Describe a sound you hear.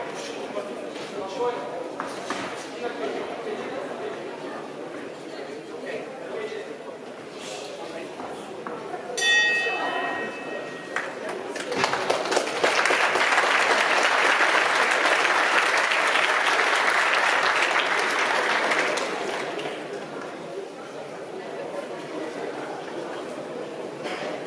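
People in the crowd chatter and call out.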